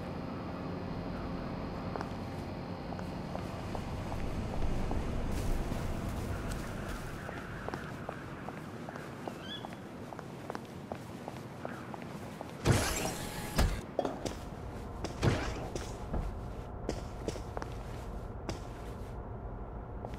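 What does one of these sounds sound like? Footsteps walk along a hard path.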